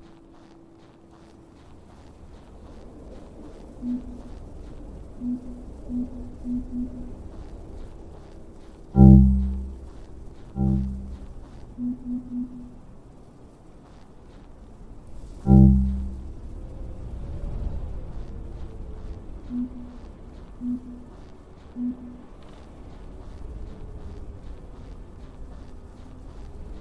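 Footsteps crunch quickly on snow.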